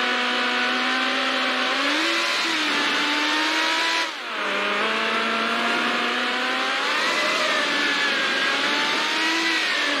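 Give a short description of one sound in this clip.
A racing car engine roars at high revs, rising and dropping in pitch with gear shifts.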